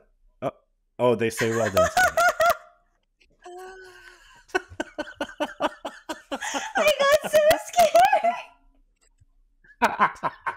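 A young woman laughs loudly over an online call.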